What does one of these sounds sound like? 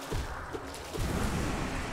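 A dark mass bursts apart with a deep, rumbling crash.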